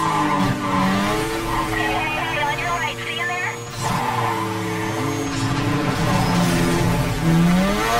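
Tyres screech as a car drifts through a bend.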